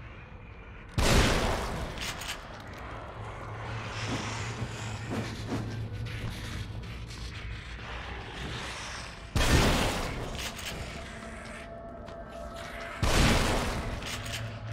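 Gunshots bang loudly, each with a ringing tail.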